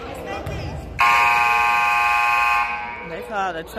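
A referee's whistle blows one long, shrill blast in an echoing gym.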